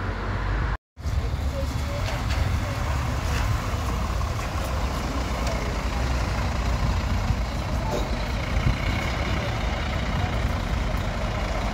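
A bus engine rumbles as it pulls up.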